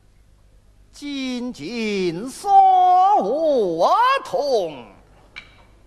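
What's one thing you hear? A man sings in a high, gliding operatic voice.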